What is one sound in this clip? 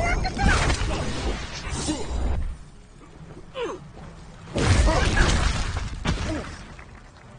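Fire bursts with a loud roaring whoosh.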